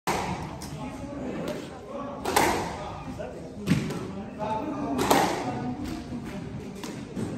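A squash ball smacks sharply off the walls of an echoing court.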